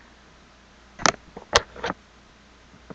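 Fingers bump and rub against the microphone a few times.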